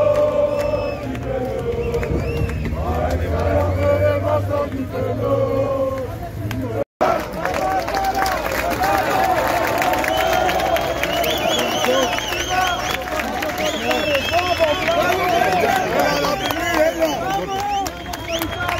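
A large crowd of men chants and sings loudly outdoors.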